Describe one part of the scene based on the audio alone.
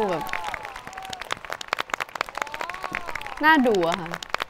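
A crowd of young women claps.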